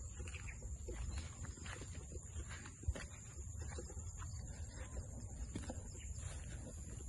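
Grass rustles in the wind.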